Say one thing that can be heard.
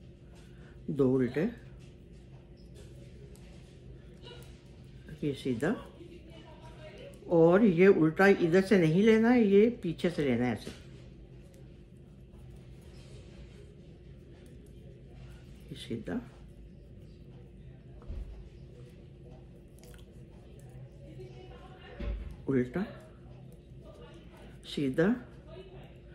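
Metal knitting needles click against each other.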